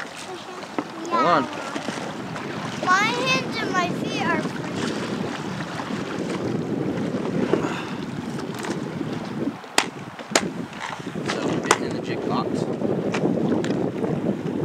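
River water flows and laps against a raft.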